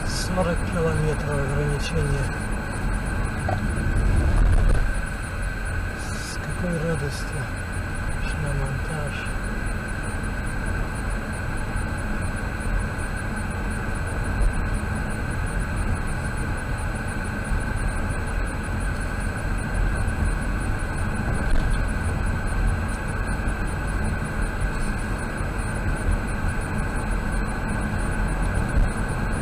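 Tyres roll along a paved road with a low, steady rumble.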